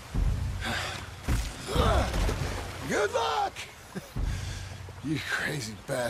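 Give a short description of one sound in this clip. Wooden barrels splash into a river.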